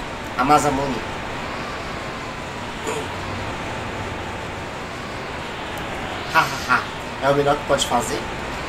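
A man speaks casually, close to a microphone.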